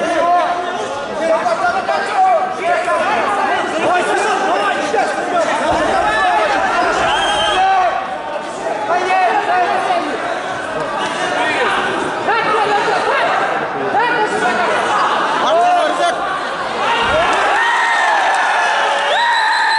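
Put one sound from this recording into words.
A crowd of spectators shouts and cheers loudly in an echoing hall.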